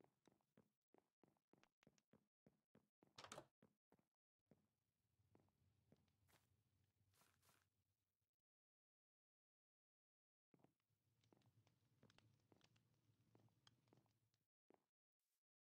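Footsteps tap on wooden planks.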